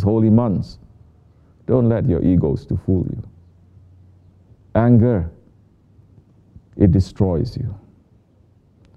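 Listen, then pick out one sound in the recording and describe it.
A man speaks slowly and clearly into a microphone, reading out in short phrases with pauses.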